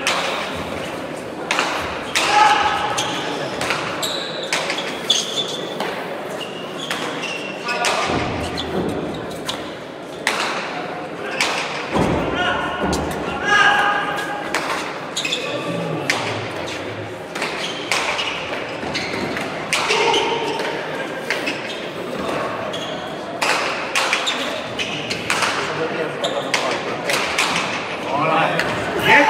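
Players' shoes squeak on the floor.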